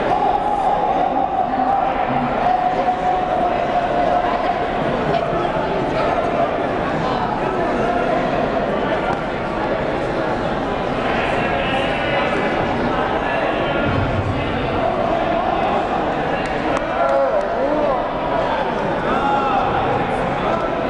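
A crowd chatters and murmurs throughout a large echoing hall.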